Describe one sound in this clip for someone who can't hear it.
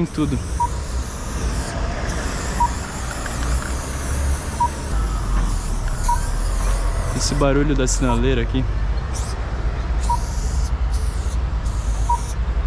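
An aerosol spray can hisses in short and long bursts.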